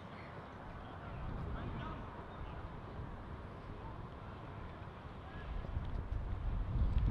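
Wind rumbles against the microphone in gusts.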